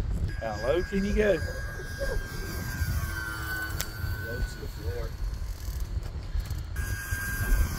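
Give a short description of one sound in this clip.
A model airplane's engine whines steadily overhead.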